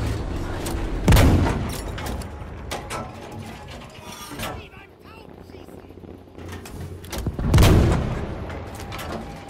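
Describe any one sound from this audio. A tank cannon fires with a loud, booming blast.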